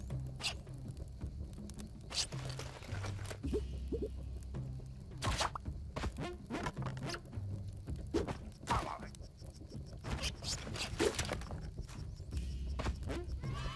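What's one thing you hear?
Game music plays steadily with a low pulsing bass.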